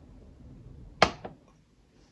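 A glass jug knocks down onto a hard surface.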